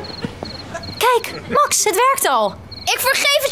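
A young woman speaks with animation.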